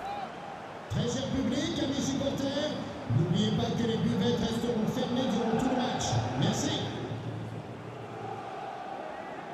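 A large stadium crowd roars and cheers loudly, then quiets.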